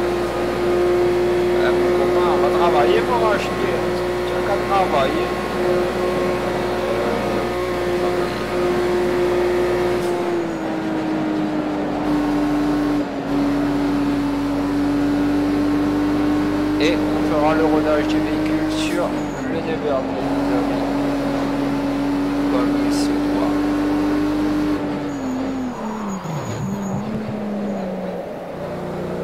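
A car engine roars steadily at high revs, then drops in pitch as the car brakes.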